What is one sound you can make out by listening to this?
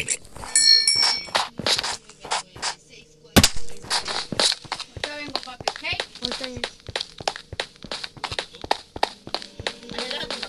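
A pickaxe taps rapidly on blocks in a video game.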